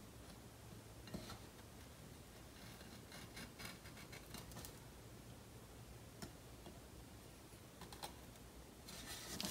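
A craft knife scrapes and cuts along paper.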